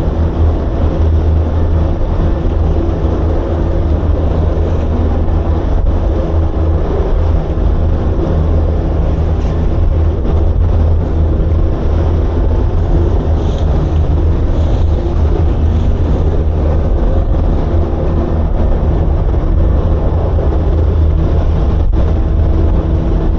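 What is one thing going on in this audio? A boat's outboard engine roars steadily at speed.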